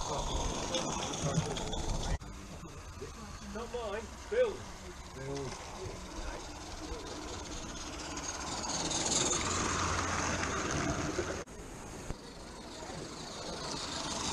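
A miniature live steam locomotive chuffs past.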